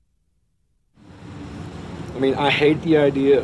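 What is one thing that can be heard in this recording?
A middle-aged man talks with animation.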